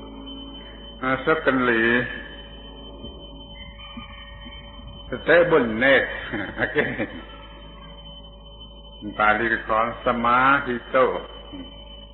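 An elderly man speaks slowly in short phrases with long pauses, heard through an old, hissy recording.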